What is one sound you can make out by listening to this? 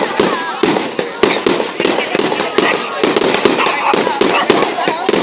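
Fireworks pop and crackle rapidly, close by.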